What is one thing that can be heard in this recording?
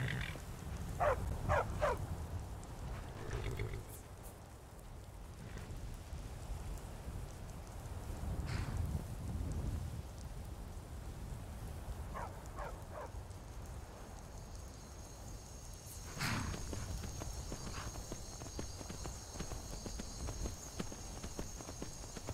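A horse's hooves thud steadily on a stony path.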